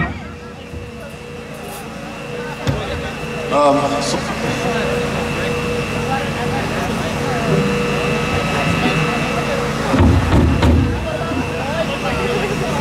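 A drummer plays a drum kit.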